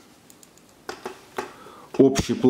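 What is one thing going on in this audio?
Metal sunglasses click softly as they are handled.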